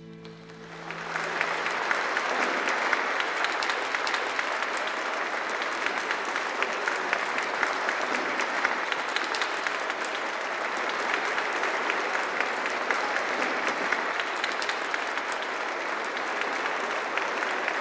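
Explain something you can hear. A large crowd applauds loudly in a big hall.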